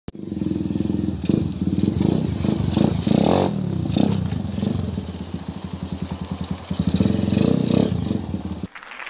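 A dirt bike engine idles close by with a rapid popping putter.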